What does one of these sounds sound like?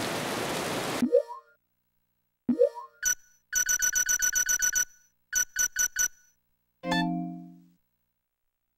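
Game menu beeps and blips quickly as a cursor moves through a list.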